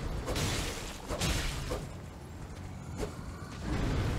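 A sword swings and slashes.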